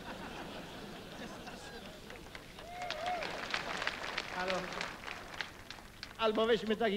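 An audience laughs and chatters in a large hall.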